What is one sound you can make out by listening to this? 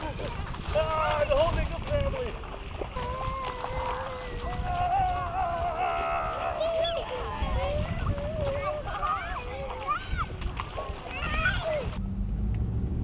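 Feet splash through shallow water.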